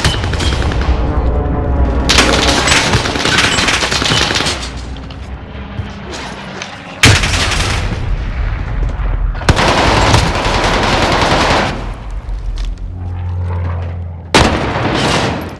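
Gunfire cracks in loud bursts.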